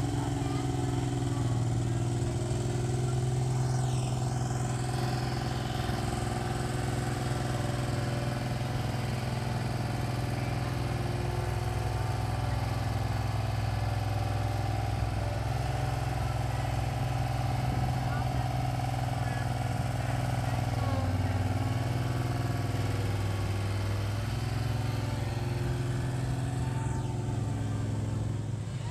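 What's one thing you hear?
A small diesel engine rumbles steadily close by, with its pitch dipping and rising now and then.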